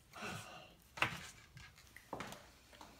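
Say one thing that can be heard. A hoverboard clicks as a hand sets it on the floor.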